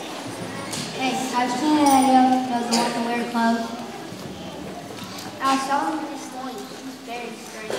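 A young boy sings into a microphone through loudspeakers in a large echoing hall.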